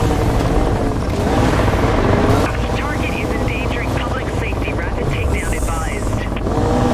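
Tyres screech as a car drifts through a bend.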